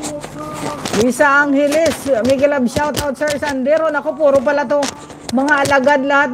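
A middle-aged woman sings close to a microphone.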